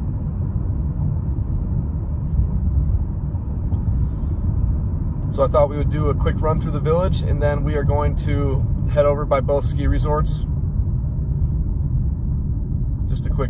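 A car's tyres rumble low and steady on the road, heard from inside the car.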